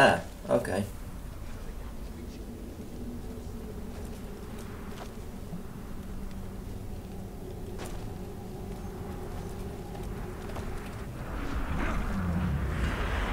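A young man talks casually into a nearby microphone.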